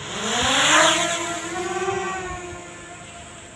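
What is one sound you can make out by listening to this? A small drone's propellers whine and rise in pitch as it lifts off.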